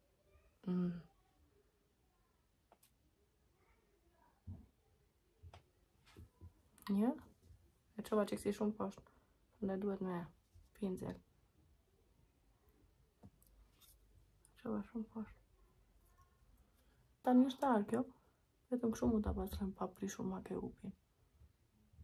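A young woman speaks calmly and close to the microphone, in short bursts.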